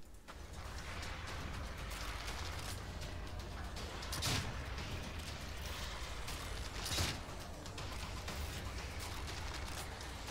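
A crossbow fires bolts with sharp snaps.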